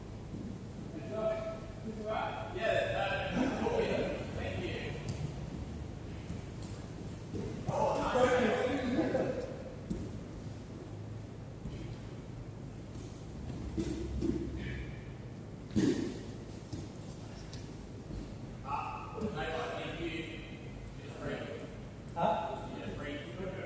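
Adult men and women talk and call out in a large echoing hall.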